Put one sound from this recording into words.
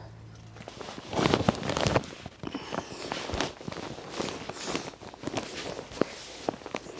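A heavy bag rustles and crinkles as it is carried.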